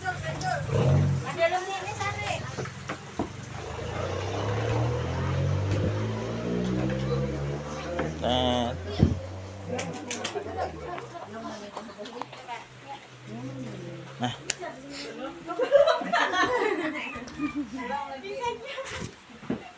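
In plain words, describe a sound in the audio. Several women and children talk and chatter close by.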